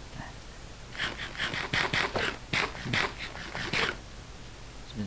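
Someone chews and munches food with quick crunchy bites.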